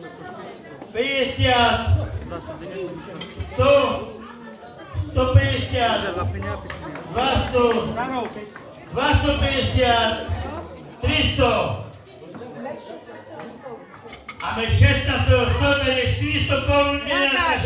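A middle-aged man speaks with animation into a microphone, amplified through loudspeakers in an echoing hall.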